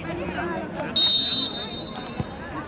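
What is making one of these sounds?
A referee's whistle blows one sharp blast.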